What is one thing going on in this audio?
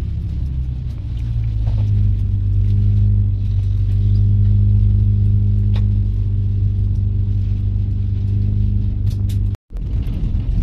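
A train rumbles steadily, heard from inside a carriage.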